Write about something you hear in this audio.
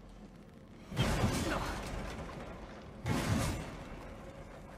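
A sword swings through the air with a heavy whoosh.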